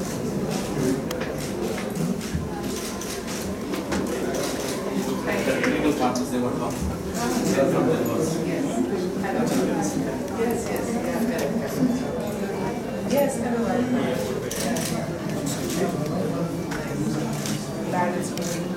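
A crowd of men and women chatter all around in a busy room.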